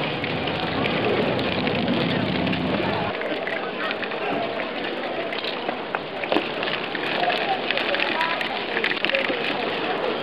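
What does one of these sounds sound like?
Spray paint cans hiss in short bursts close by.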